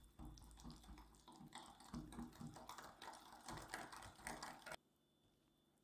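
A whisk beats rapidly against a bowl.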